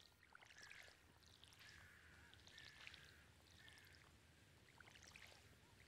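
Bright chirping game sound effects repeat in quick bursts.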